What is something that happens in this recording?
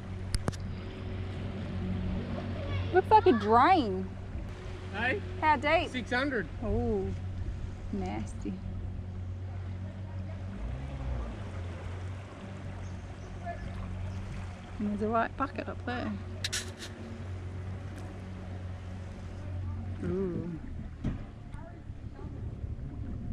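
Water swishes against a boat's hull.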